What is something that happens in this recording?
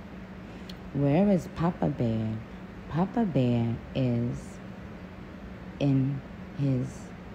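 A woman speaks casually and close to a phone microphone.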